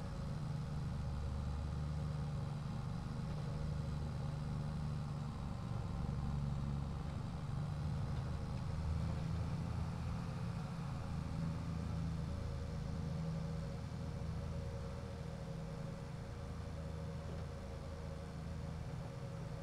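A tractor engine drones steadily while driving.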